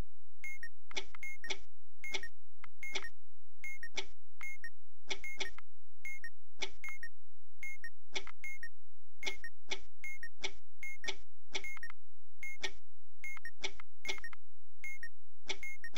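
Electronic game buttons click and beep in quick bursts.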